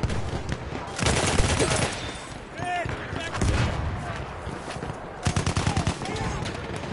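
A gun fires rapid bursts of shots nearby.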